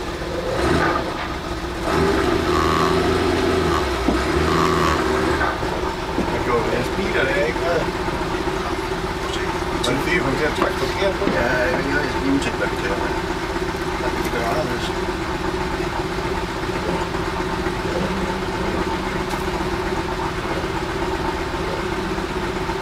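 A car engine idles with a steady low rumble from inside the car.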